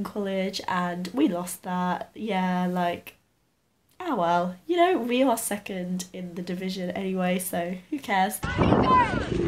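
A young woman talks calmly and cheerfully close to a microphone.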